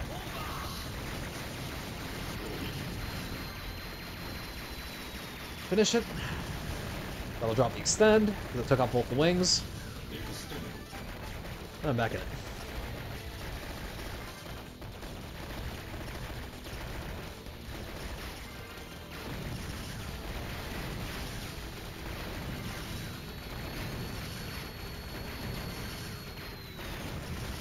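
Rapid game gunfire and explosions crackle steadily.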